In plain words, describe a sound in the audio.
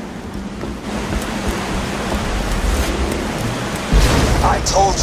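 Water rushes down a waterfall nearby.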